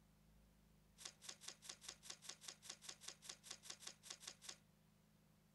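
A game interface ticks rapidly as a meter fills up.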